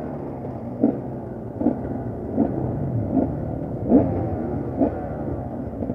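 A two-stroke enduro motorcycle's throttle is blipped.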